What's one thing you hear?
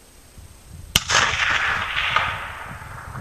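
A rifle shot cracks and echoes.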